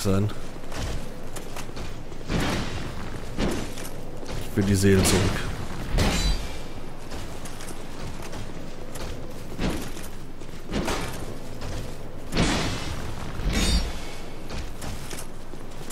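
Heavy blows and clanging weapons strike in a fight.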